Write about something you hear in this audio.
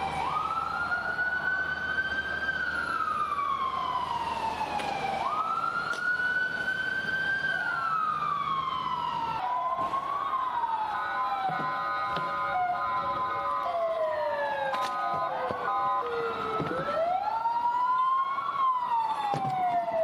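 Sirens wail loudly, rising and falling over and over.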